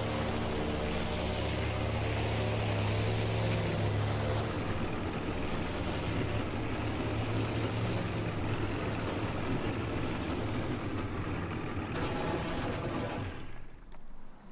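Water splashes and churns against a boat hull.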